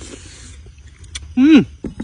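A young man slurps food from a spoon.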